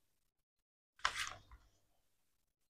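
Paper rustles as a sheet is flipped.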